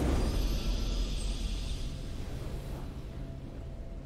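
A triumphant game fanfare rings out and fades away.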